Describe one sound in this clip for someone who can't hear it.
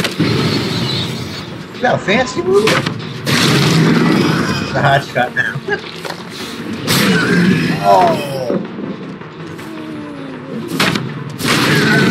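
A wooden pallet slams down with a heavy crash.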